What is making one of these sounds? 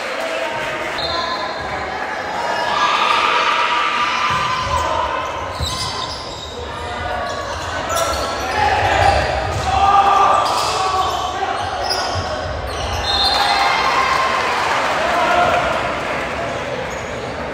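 Shoes squeak on a gym floor.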